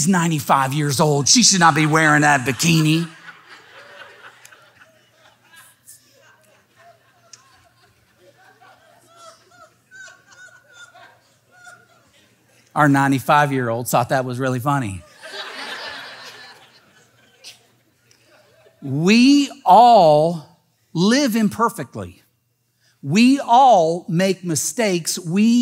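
A man speaks with animation through a microphone, pausing between phrases.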